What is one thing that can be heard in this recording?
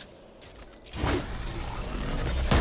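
A magical energy blast crackles and whooshes loudly.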